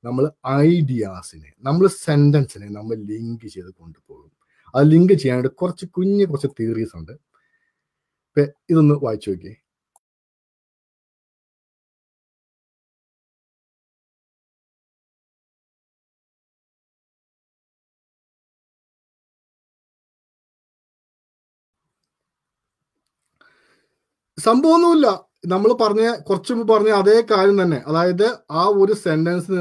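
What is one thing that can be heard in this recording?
A man speaks calmly and clearly into a close microphone, explaining with animation.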